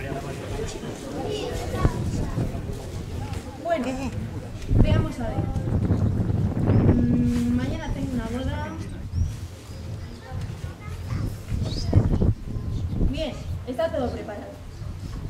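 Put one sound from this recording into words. A woman speaks at a distance, reading out calmly outdoors.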